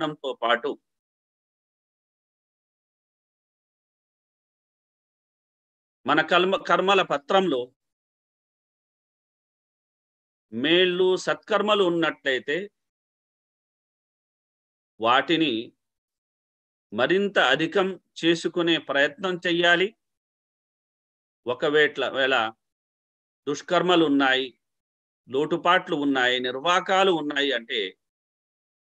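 A middle-aged man speaks slowly and calmly with pauses, heard through an online call.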